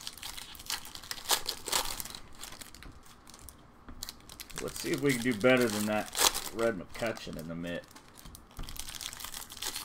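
Foil card wrappers crinkle and tear as hands open them.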